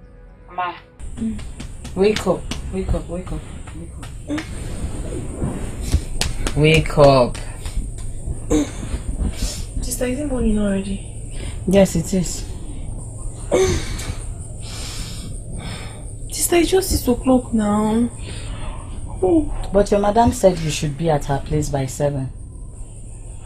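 A woman speaks in a tense, worried voice close by.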